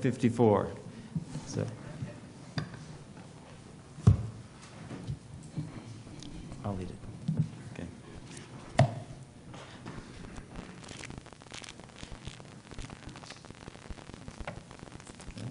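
An elderly man speaks calmly into a microphone in an echoing hall.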